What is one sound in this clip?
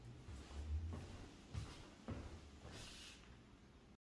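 Footsteps walk away across a floor.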